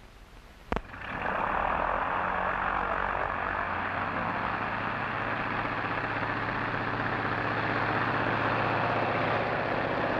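A propeller plane's engine roars steadily.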